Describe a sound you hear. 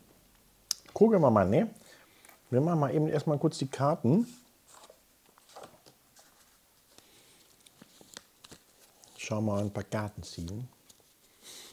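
A man speaks calmly in short bursts, close to a microphone.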